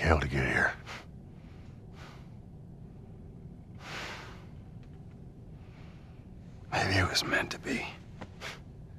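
A man speaks quietly and wearily, close by.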